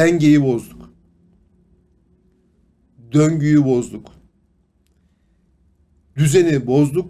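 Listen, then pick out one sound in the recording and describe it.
A middle-aged man speaks with animation into a close microphone, in short bursts with pauses.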